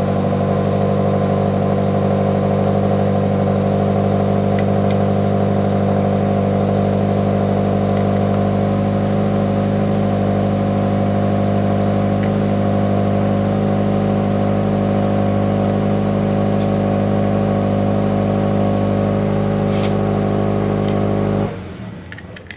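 A car engine idles with a deep, steady exhaust rumble close by, then cuts off.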